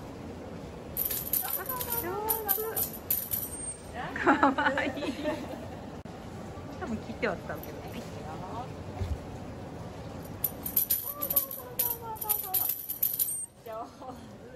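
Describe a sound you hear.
A sea lion slaps a tambourine with its flipper, making it jingle.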